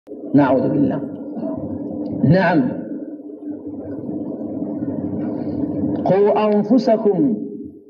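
A man speaks slowly and solemnly into a close microphone, his voice drawn out as if reciting.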